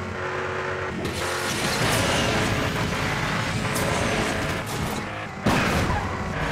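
A nitro boost whooshes loudly.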